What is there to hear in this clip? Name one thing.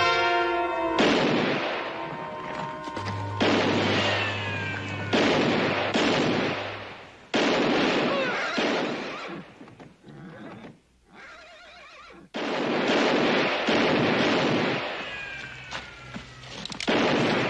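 Gunshots ring out loudly, one after another, with echoes.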